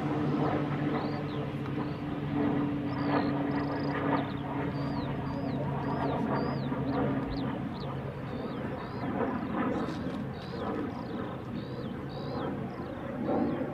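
Heavy armoured vehicle engines rumble steadily outdoors.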